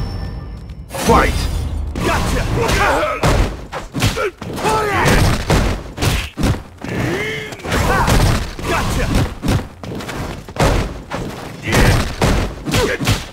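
Punches and kicks land with sharp, rapid thuds.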